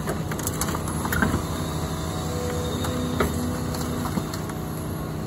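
Debris cracks and clatters as an excavator bucket moves through it.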